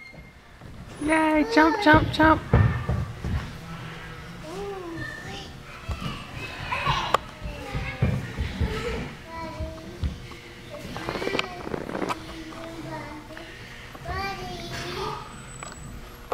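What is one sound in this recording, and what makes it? A toddler squeals and babbles in a high voice nearby.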